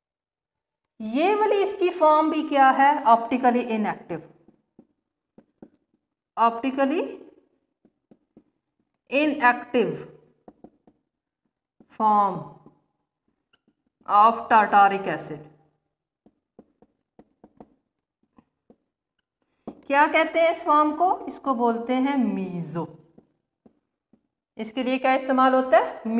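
A woman speaks calmly and clearly, as if explaining, close to a microphone.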